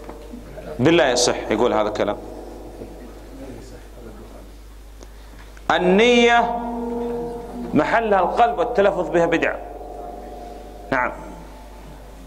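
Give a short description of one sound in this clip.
A man speaks to a seated group in short phrases, in an echoing hall.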